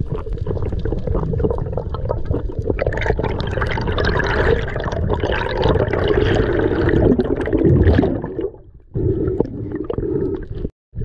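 Water rushes and rumbles in a muffled way underwater.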